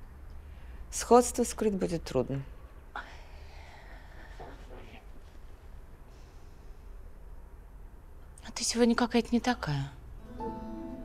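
A young woman speaks with irritation, close by.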